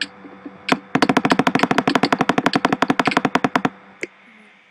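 A sword strikes again and again in rapid hits.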